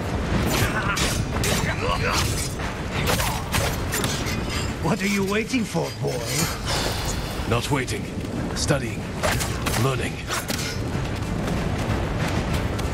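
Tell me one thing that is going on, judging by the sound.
Swords clash and clang repeatedly.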